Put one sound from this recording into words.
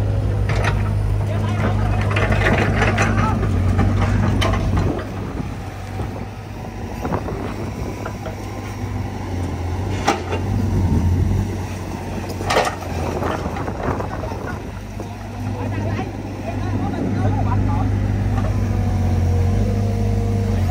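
Excavator buckets scrape and dig into wet soil.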